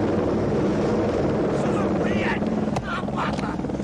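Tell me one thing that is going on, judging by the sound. A helicopter engine drones and its rotor thumps loudly.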